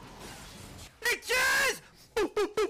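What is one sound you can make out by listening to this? A young man screams loudly into a close microphone.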